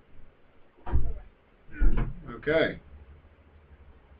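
A wooden chest lid thuds shut.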